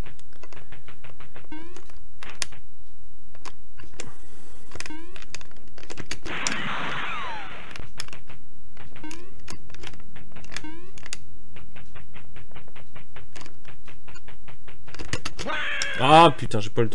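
A retro video game plays rapid short bleeping footstep sounds.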